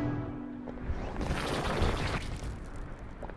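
A heavy stone pillar rumbles as it rises out of the ground.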